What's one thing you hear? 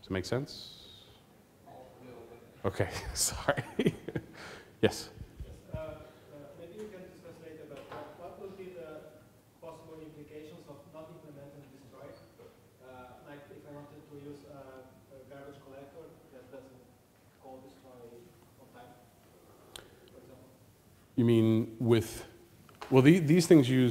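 A man lectures calmly through a microphone in a large hall.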